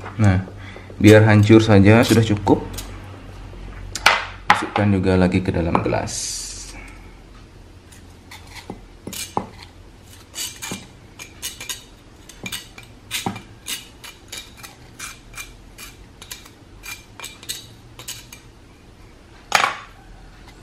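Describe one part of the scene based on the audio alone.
A metal knife scrapes and taps against a stone bowl.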